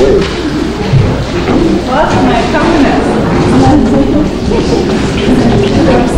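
A crowd of elderly people chatters in an echoing hall.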